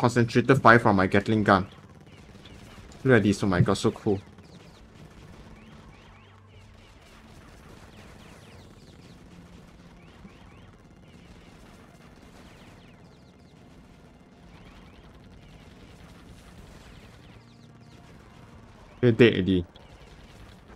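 Gun turrets fire rapid laser shots.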